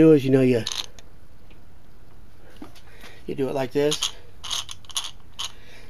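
A socket wrench ratchet clicks in quick bursts.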